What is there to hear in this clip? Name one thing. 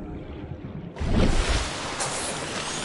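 Water splashes loudly as a swimmer breaks the surface.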